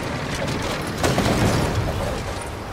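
Bricks crash and scatter in a burst.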